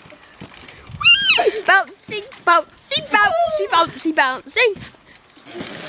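A young boy squeals and shouts excitedly close by.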